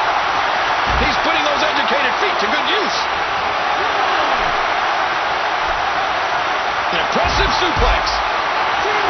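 A body crashes onto the arena floor with a thud.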